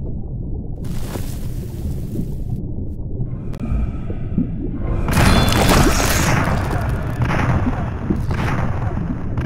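Water rushes and bubbles underwater.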